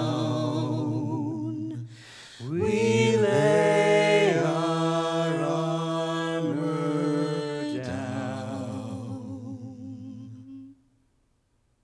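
A piano plays chords.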